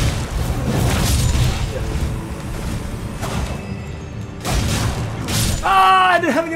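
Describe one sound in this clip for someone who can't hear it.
Swords clash and slash with sharp metallic impacts.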